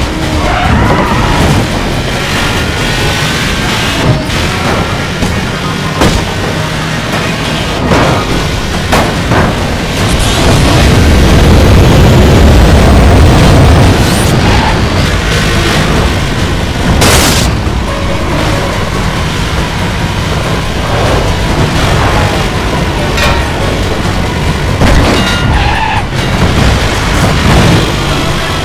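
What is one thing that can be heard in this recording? A car engine roars at high speed throughout.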